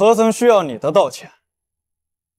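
A young man speaks sharply and close by.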